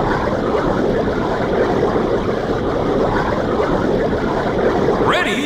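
Bubbles gurgle and fizz steadily underwater.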